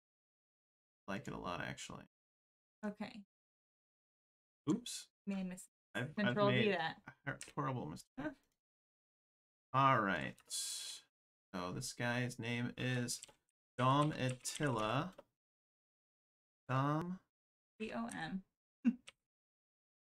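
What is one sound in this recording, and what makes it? A man speaks calmly through a microphone, in short phrases with pauses.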